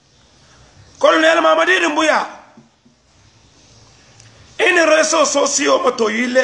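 A man speaks forcefully and with emotion, close to a phone microphone.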